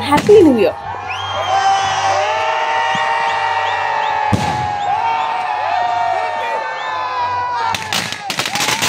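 Fireworks whistle and screech as they shoot into the sky.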